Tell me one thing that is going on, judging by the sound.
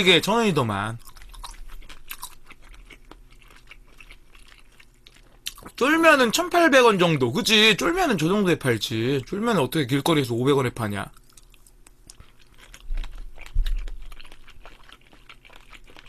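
A young man chews and slurps food close to a microphone.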